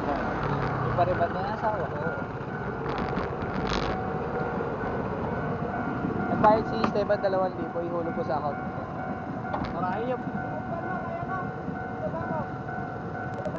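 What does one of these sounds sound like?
A railway crossing alarm rings steadily nearby.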